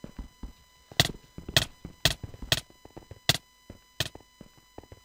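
Sharp hit sound effects of a video game sword fight click in quick succession.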